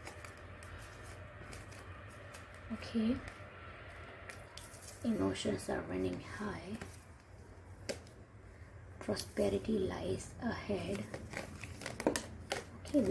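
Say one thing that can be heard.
Playing cards shuffle and slide against each other.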